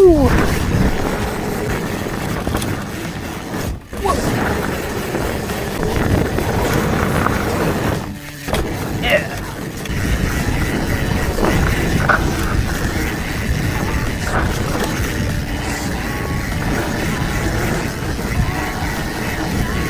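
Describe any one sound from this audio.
A bicycle's frame rattles and clatters over bumps.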